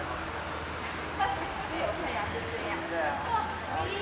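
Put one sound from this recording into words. Adult voices murmur nearby.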